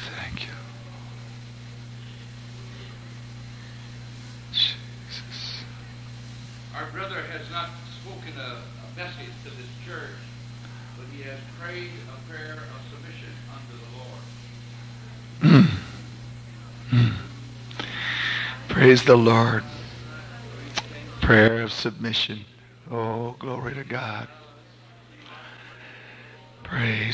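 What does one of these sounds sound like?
An elderly woman speaks into a microphone, with pauses between phrases.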